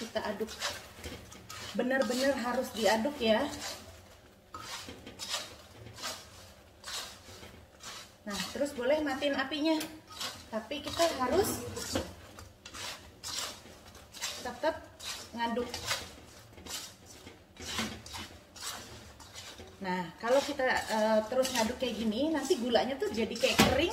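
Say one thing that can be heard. A metal spatula scrapes and clatters against a frying pan.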